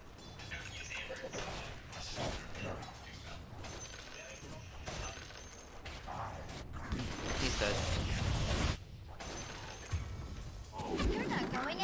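Magic spells crackle and whoosh in a fast fight.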